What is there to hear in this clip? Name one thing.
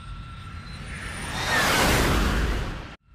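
A jet roars loudly as it climbs away with its afterburner.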